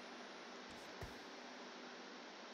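A magic blast bursts with a short crackle.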